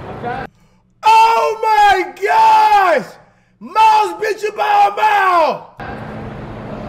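A man shouts loudly and excitedly into a close microphone.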